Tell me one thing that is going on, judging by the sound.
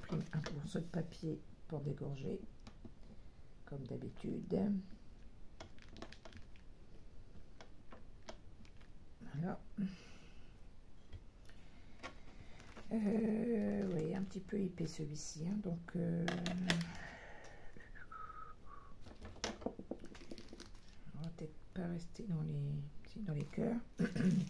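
Paper and card rustle and tap as they are handled.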